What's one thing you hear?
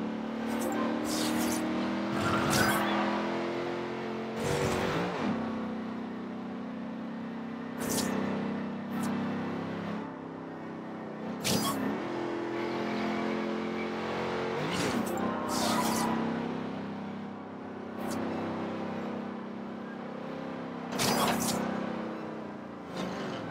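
A sports car engine roars steadily at high revs.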